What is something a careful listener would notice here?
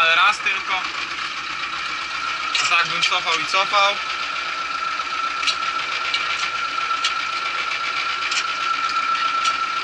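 A tractor engine hums steadily with a high whine.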